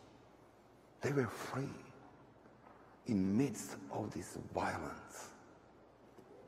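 A man chants in a sung voice through a microphone.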